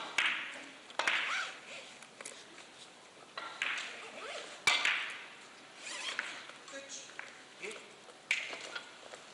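Billiard balls clack against each other and knock off the cushions.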